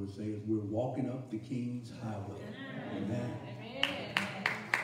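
A man speaks into a microphone in an echoing room.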